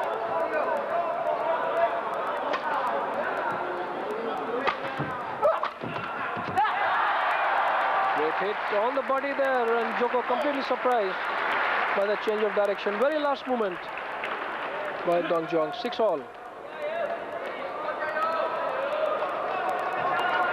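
A large crowd murmurs and cheers in an echoing hall.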